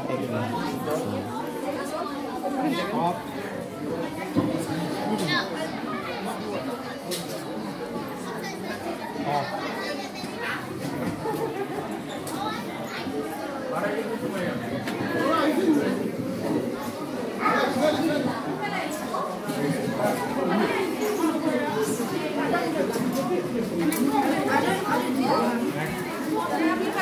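A crowd of children and adults chatter all around in a busy echoing room.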